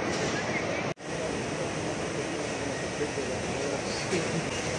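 An escalator hums as it runs.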